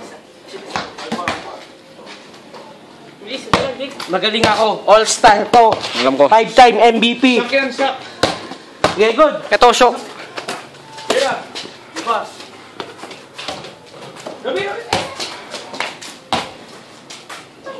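A basketball bounces on concrete.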